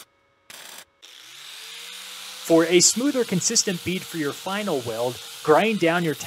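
An angle grinder spins up to a steady high whine.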